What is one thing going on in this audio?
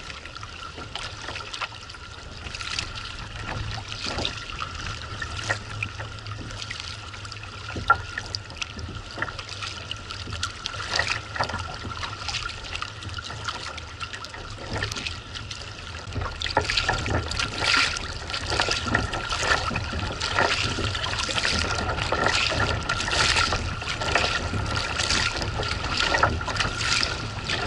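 Kayak paddles splash rhythmically through choppy water.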